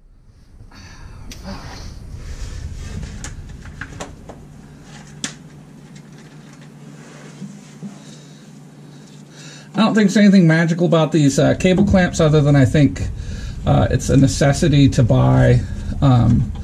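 Small parts click and rattle as hands work on them.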